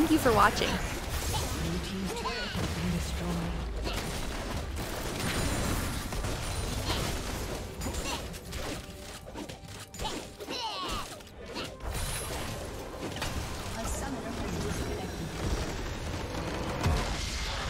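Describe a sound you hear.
Game combat effects clash and zap rapidly.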